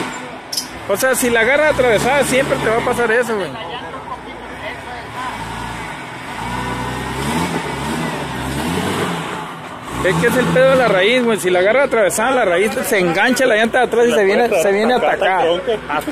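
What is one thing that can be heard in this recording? Men shout and talk nearby outdoors.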